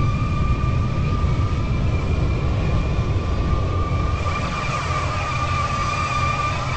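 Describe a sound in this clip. A jet engine roars and whines steadily.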